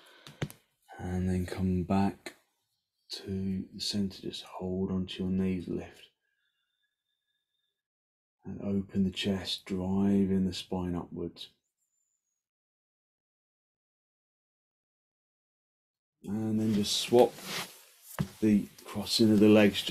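A man speaks calmly and close by, in short spells with pauses.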